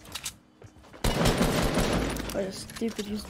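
A gun fires rapid loud shots.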